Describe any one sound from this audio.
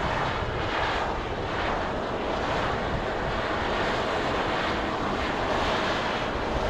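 Steam roars and hisses from a volcanic fumarole.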